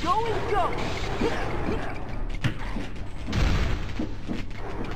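A magical blast whooshes and sparkles.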